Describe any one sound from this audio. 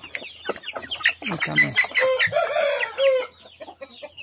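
A young chicken squawks loudly.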